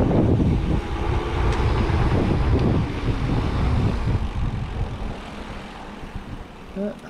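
Wind rushes and buffets loudly past a bicycle rider, then eases off.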